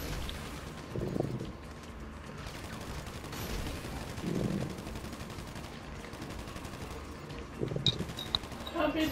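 A rocket launcher fires with a deep, booming whoosh.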